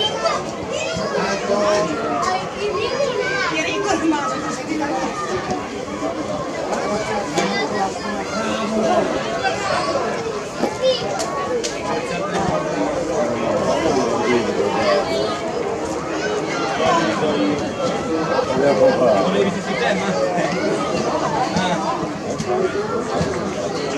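Children shout to each other outdoors on an open field.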